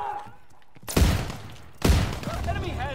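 A shotgun fires with loud, sharp blasts.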